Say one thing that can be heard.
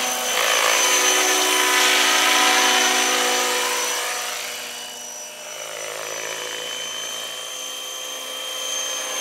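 A model helicopter's engine whines at a high pitch, growing louder as it passes close and fading as it flies off, then swelling again.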